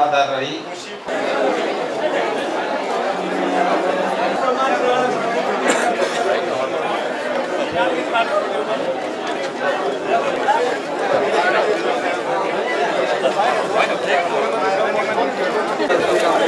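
A crowd of men and women chatter and talk over one another in a room.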